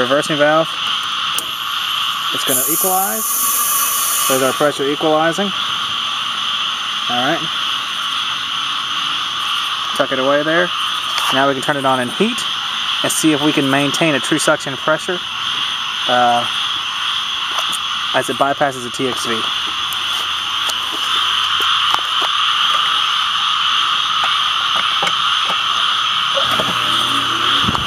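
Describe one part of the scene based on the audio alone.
An outdoor heat pump unit hums steadily close by.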